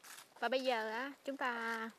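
Footsteps crunch on dry leaves along a path.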